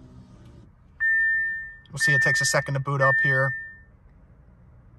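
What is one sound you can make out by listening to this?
A car's warning chime beeps three times in steady tones.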